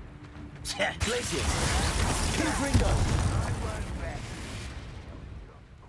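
A spell bursts with a crackling, rushing roar.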